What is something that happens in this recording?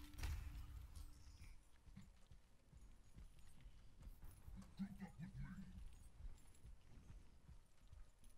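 Video game footsteps patter on stone.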